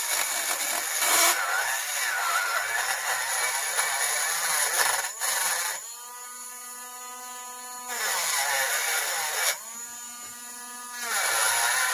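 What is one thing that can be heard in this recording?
A small rotary tool grinds metal with a harsh, scratchy rasp.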